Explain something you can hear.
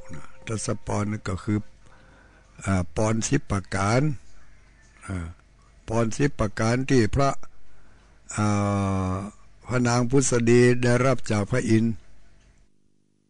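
An elderly man chants into a microphone in a slow, steady voice.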